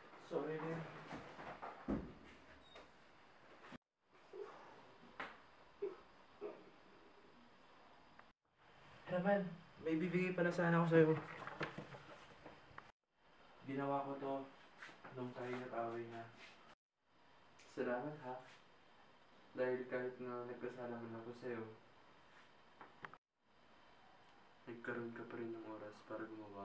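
A young man speaks quietly and with emotion, close by.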